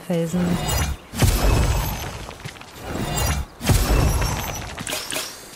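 A pickaxe strikes rock with sharp clinking blows.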